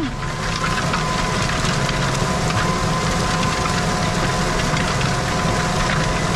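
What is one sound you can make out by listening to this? A disc harrow rumbles and rattles through the soil behind the tractor.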